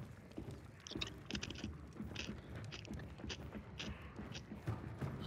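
Footsteps thud quickly and steadily on wooden boards.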